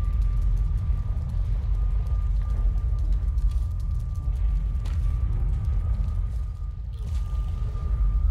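A fiery portal roars with a deep, steady rumble.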